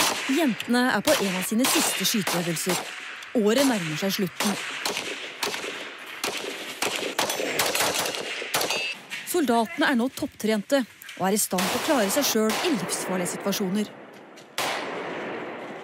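Rifle shots crack in sharp bursts.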